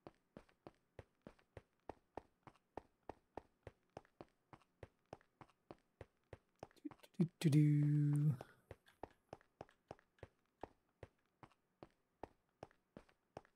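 Quick footsteps tap steadily on stone.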